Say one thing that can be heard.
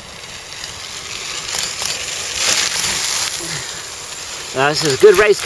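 Bicycle tyres crunch over a gravel track as riders pass close by.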